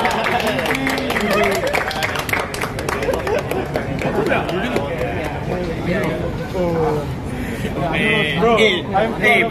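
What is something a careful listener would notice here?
A crowd of young people chatters all around.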